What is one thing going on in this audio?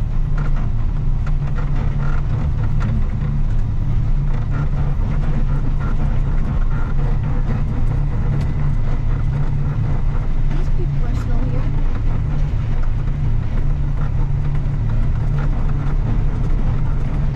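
A snowplough rattles and clanks as it drives over a rough snowy track.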